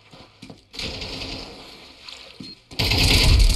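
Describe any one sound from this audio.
Water splashes under footsteps.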